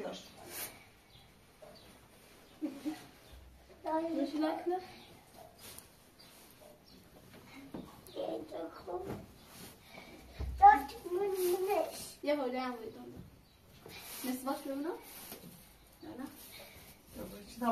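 Fabric rustles as clothes are unfolded and shaken.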